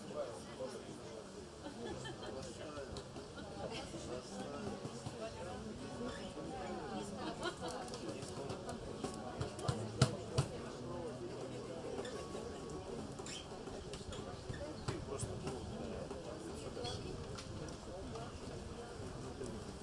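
An acoustic guitar strums a lively tune through loudspeakers outdoors.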